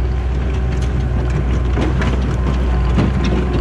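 Brush and dirt scrape and crackle under a loader's bucket.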